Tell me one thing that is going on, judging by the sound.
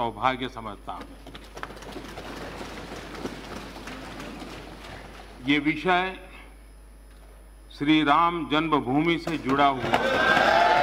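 An elderly man speaks calmly into a microphone in a large hall.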